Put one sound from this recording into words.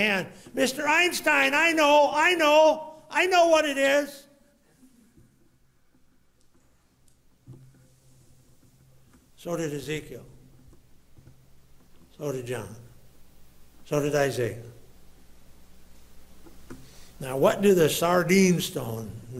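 A man preaches with emotion into a microphone, in bursts with long pauses.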